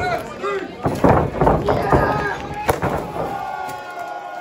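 A body slams hard onto a wrestling ring floor with a loud thud.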